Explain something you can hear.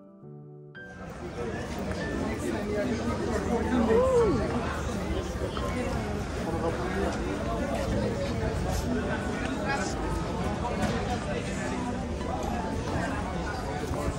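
A crowd of men and women chatter and murmur nearby outdoors.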